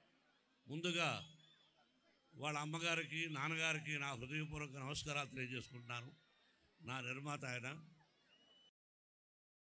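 An older man speaks with animation into a microphone over a loudspeaker.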